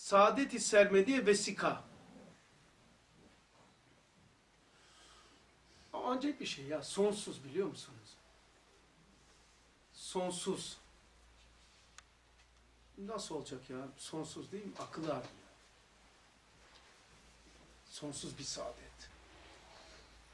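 An older man speaks calmly in short bursts, close to a microphone, with pauses between.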